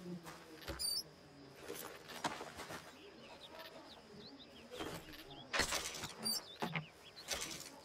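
A wooden lid opens and shuts with soft knocks.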